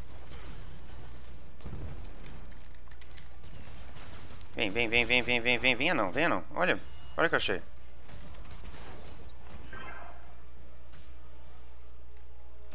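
Spells and weapon hits crackle and whoosh in a fantasy game battle.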